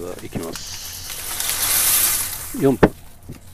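Dry pasta pours into a pot of water with a rushing hiss.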